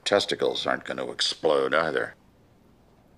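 An elderly man speaks calmly and wearily, close by.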